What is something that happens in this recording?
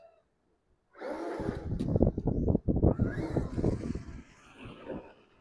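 A toy car's small electric motor whirs as it drives over grass.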